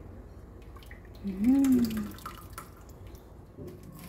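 A thick liquid bubbles gently in a pot.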